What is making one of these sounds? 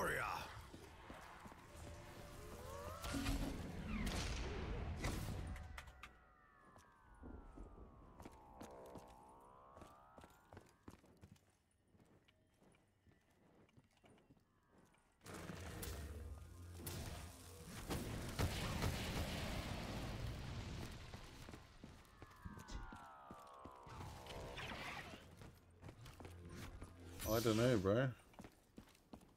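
Game gunfire and fiery blasts rumble loudly.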